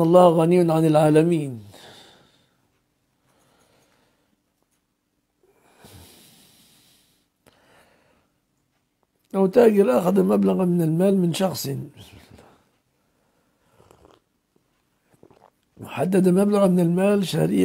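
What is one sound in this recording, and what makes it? An elderly man speaks calmly into a close microphone, with long pauses.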